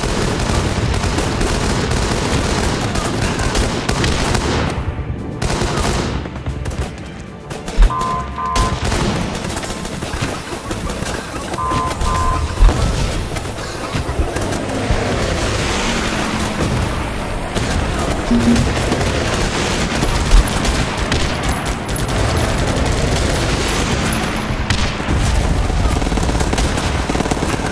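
Gunfire and explosions rattle and boom continuously.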